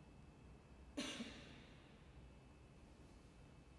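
A piano plays a chord that rings out in an echoing hall.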